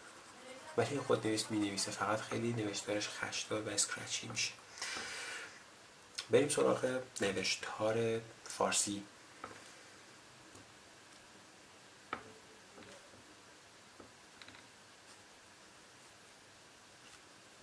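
A pen scratches and scribbles on paper.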